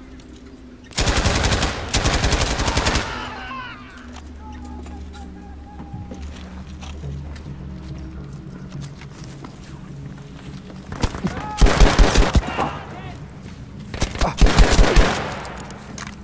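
Bursts of rapid gunfire ring out close by.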